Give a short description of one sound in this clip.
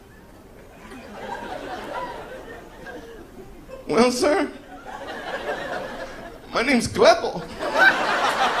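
An audience laughs in a large room.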